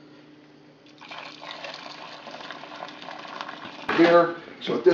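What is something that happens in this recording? Liquid pours and splashes into a strainer.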